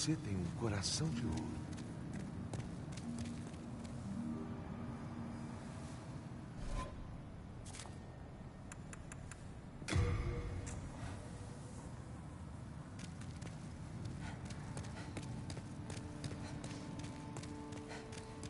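Footsteps sound on a stone floor.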